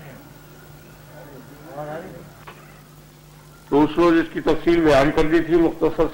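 An elderly man speaks slowly, heard through an old, hissy recording.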